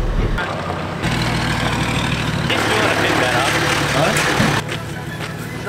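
A middle-aged man talks from inside a truck.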